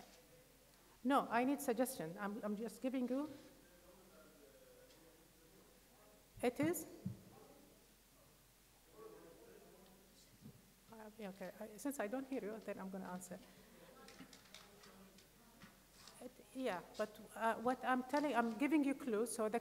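A woman speaks calmly through a microphone in a large echoing hall, with pauses.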